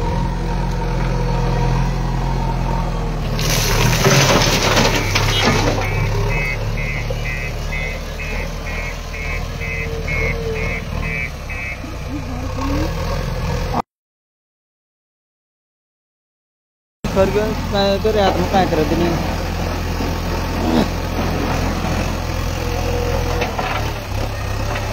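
A backhoe loader's diesel engine rumbles steadily nearby.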